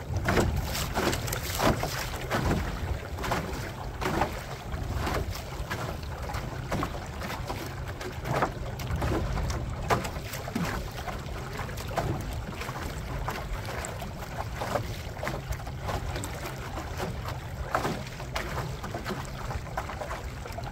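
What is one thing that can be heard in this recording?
Wind rumbles across the water outdoors.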